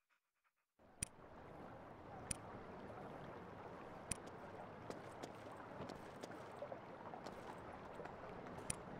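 Footsteps tread on dirt ground.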